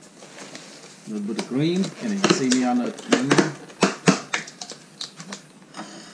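A plastic container crinkles and clicks as it is opened.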